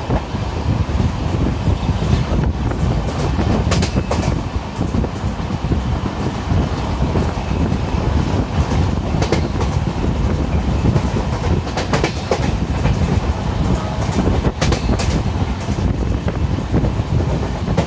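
Wind rushes loudly past an open train door.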